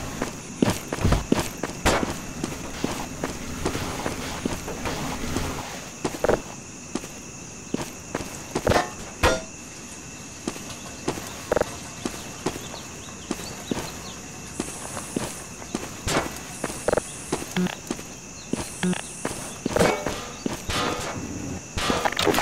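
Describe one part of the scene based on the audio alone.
Footsteps crunch on grass at an even pace.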